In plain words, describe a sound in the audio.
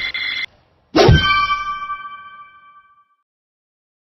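A short bright fanfare rings out and fades away.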